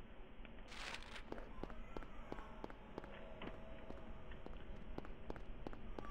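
Footsteps tap steadily on a hard road.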